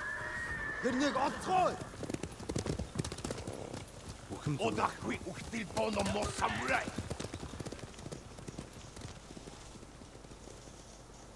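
Horses' hooves thud on the ground as riders pass.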